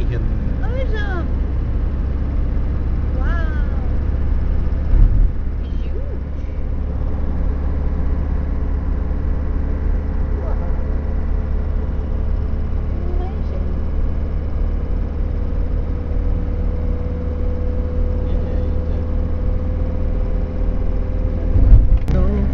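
Wind rumbles loudly against the car.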